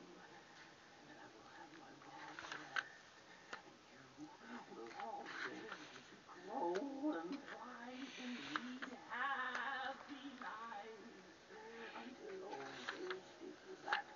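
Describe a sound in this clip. Paper pages rustle as they are turned by hand.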